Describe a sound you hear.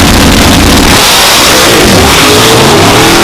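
A drag racing engine roars as the car launches away and fades down the track.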